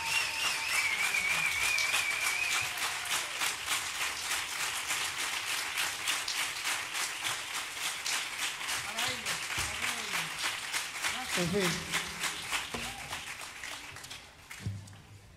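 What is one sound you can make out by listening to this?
An audience claps along in rhythm in a large hall.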